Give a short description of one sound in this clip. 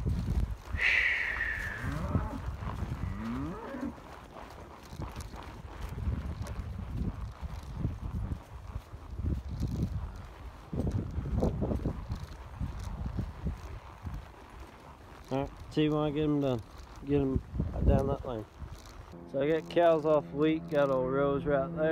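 Cattle moo loudly nearby.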